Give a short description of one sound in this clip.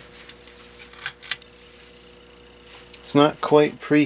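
A lamp's pull chain clicks once.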